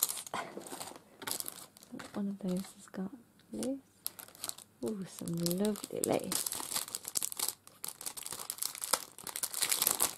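Plastic packets crinkle and rustle as they are handled.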